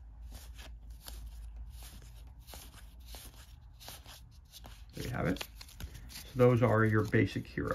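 Stiff playing cards rustle and slide against each other in hands.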